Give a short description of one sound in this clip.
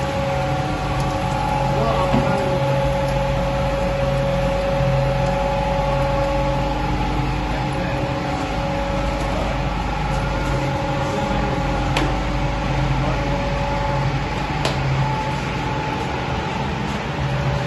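Metal parts grind and rattle inside a press.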